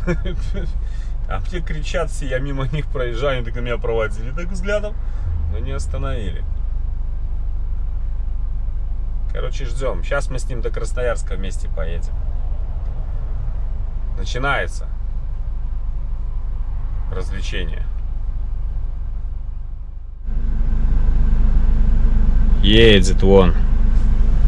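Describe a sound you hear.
A truck engine rumbles low and steady inside the cab.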